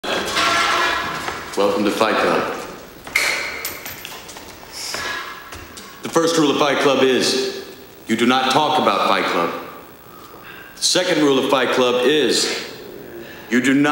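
A young man speaks forcefully in a large echoing room.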